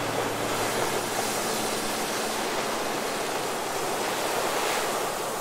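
Ocean waves crash and roar steadily onto the shore.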